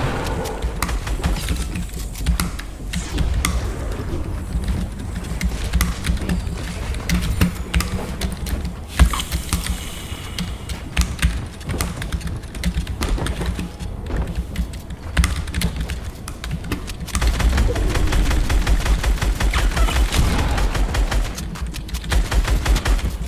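Building pieces clatter into place in rapid bursts.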